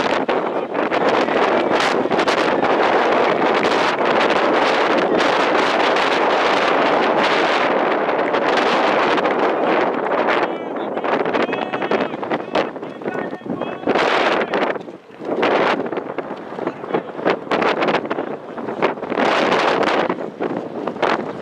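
Wind roars loudly outdoors.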